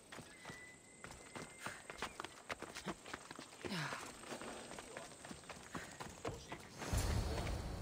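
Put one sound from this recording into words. Footsteps crunch over grass and stone.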